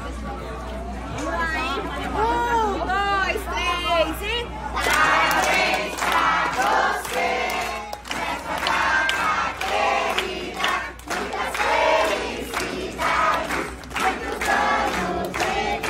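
A group of men and women sing together nearby.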